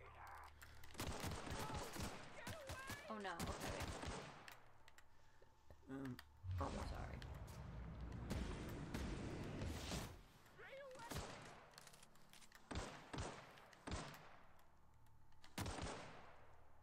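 A pistol fires sharp, loud shots in quick bursts.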